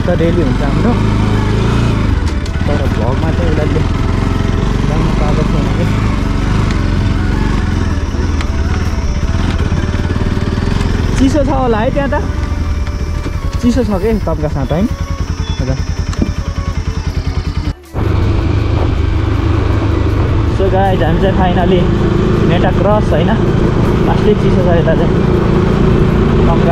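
A motorcycle engine hums steadily up close, rising and falling as the rider works the throttle.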